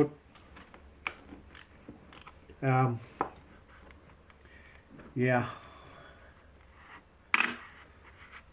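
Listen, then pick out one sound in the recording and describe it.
A hand tool clicks and taps against metal.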